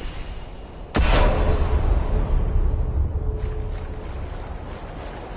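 A heavy beast's body thuds down into shallow water.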